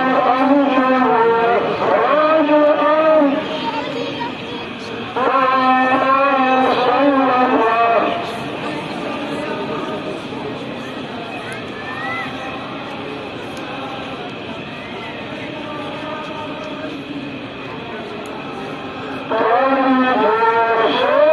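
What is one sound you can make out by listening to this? A man chants a call to prayer through a loudspeaker, echoing across the open air.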